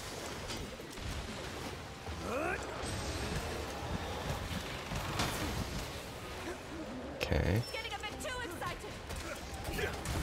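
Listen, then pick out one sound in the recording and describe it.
Heavy blows and blasts thud and crack.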